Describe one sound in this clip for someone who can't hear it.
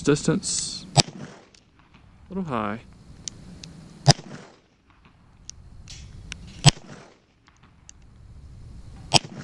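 A revolver fires sharp, loud shots outdoors.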